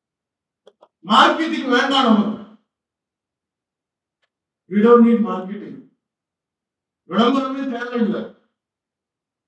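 A middle-aged man speaks slowly and formally into a microphone, in short phrases with pauses.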